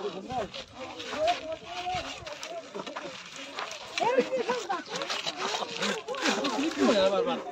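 Several men and women talk and call out nearby outdoors.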